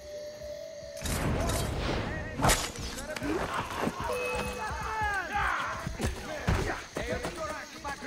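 Horses' hooves thud on grass.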